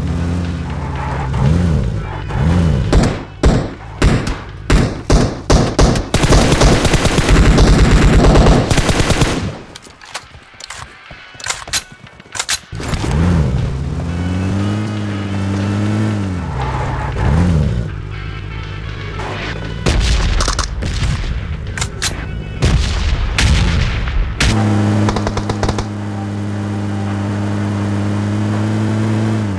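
A vehicle engine hums and revs.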